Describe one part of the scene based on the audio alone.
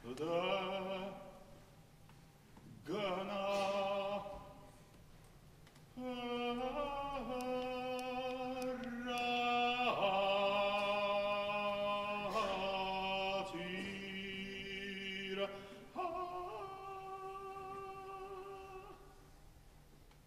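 A middle-aged man sings loudly in a full, operatic voice in an echoing hall.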